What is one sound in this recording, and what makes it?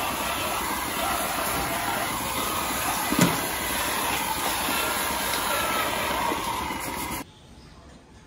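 A milking machine hisses and sucks steadily.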